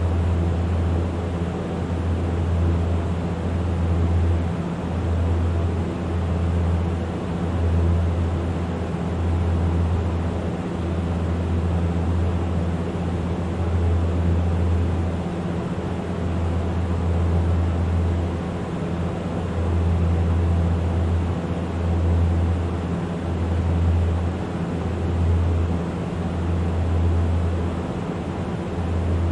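A propeller engine drones steadily with a low, throbbing hum.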